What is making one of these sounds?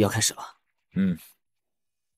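A man gives a short, low murmur.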